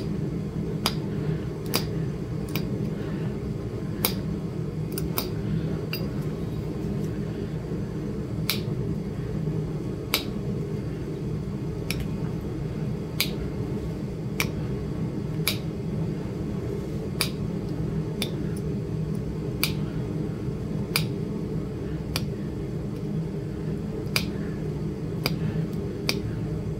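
A pointed tool taps and chips at stone in sharp, uneven clicks.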